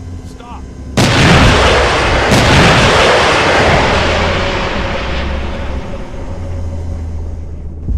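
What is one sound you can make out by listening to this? Loud explosions boom and roar, then slowly fade.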